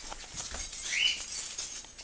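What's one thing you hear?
Flip-flops slap on a tiled floor.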